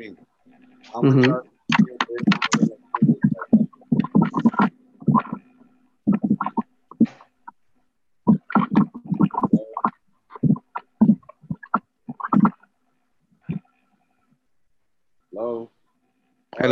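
An elderly woman speaks over an online call.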